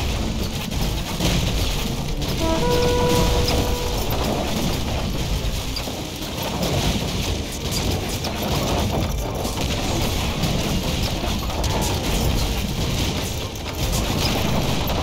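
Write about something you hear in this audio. Water laps gently against rocky shores.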